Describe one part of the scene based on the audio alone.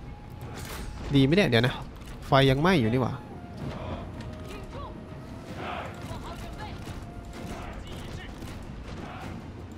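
A battle rumbles with clashing weapons.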